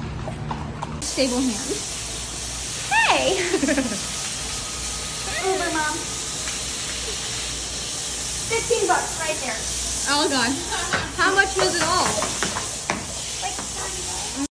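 A sprayer hisses steadily.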